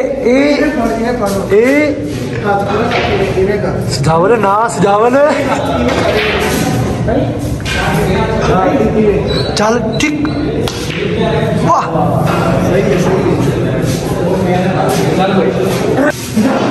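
Young men talk loudly with animation nearby.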